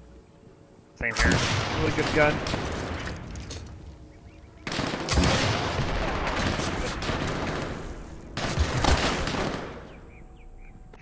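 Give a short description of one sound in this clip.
A rifle fires with loud booms that rumble away.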